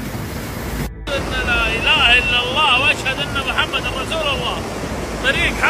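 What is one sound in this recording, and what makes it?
A waterfall pours down a rock face.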